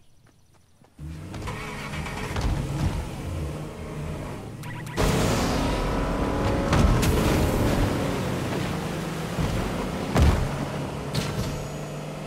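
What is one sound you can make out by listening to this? A boat engine hums and roars steadily.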